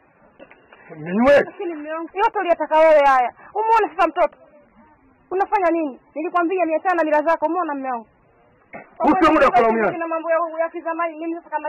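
A woman wails and sings loudly in a mournful voice close by.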